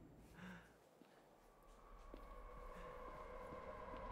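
Footsteps walk across a floor.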